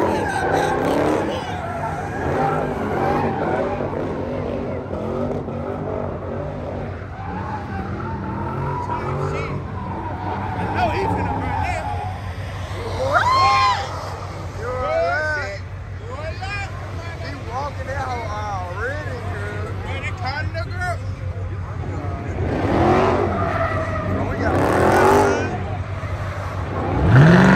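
Car engines rumble and idle loudly nearby.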